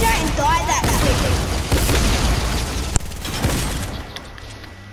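Gunfire crackles rapidly.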